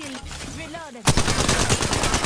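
Video game gunfire rattles.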